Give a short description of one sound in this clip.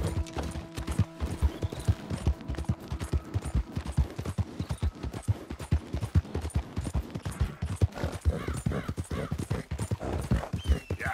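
Horse hooves thud rapidly on a dirt trail.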